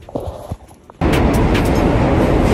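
A subway train roars into an echoing station.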